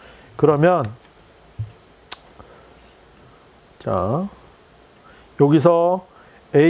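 A man speaks in short, calm phrases.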